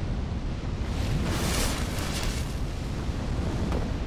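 A fire roars and crackles nearby.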